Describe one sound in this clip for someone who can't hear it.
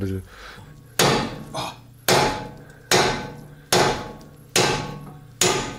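A hammer strikes metal in regular, ringing blows.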